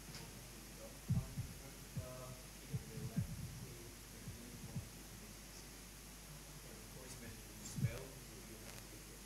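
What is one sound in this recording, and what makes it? A man speaks calmly at a distance in an echoing room.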